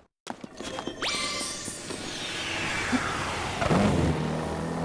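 A shimmering magical whoosh sweeps down in pitch.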